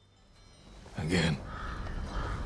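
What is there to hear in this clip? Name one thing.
A man speaks briefly in a low voice close by.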